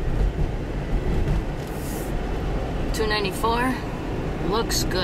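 A car drives along a road with a low, steady rumble heard from inside.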